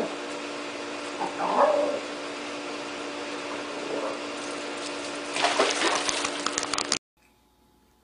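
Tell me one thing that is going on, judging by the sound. A dog and a cat scuffle on stone.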